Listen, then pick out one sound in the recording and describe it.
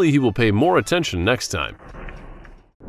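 A young man speaks close to a doorbell microphone.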